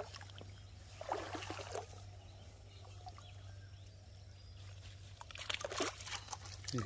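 Water splashes and trickles as hands move through shallow water.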